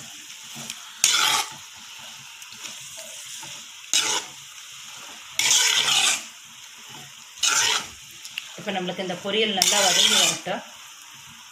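A spatula scrapes and tosses food in a large metal pan in short bursts.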